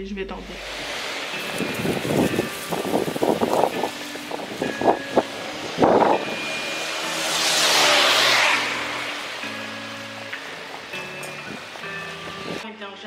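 Footsteps splash on a wet pavement.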